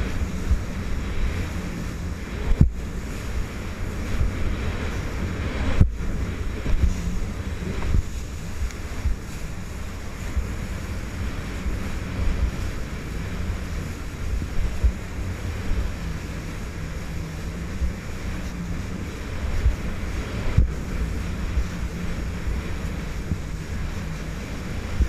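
A jet ski engine drones steadily up close.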